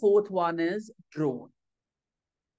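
A man speaks calmly and close to a microphone, as on an online call.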